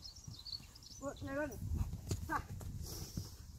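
A woman calls out brightly to a dog.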